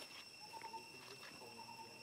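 A baby monkey squeaks softly.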